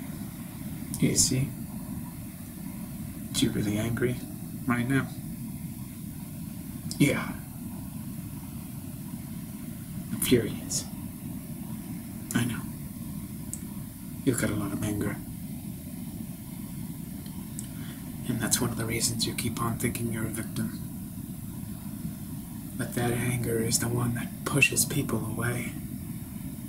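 A man speaks calmly and close by, in short bursts with pauses.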